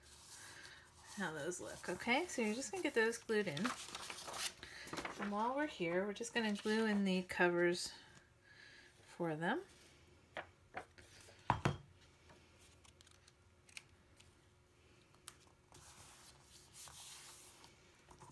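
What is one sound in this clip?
Hands rub and smooth paper cards on a table.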